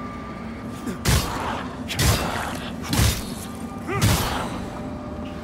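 Heavy blows strike with sharp thuds during a fight.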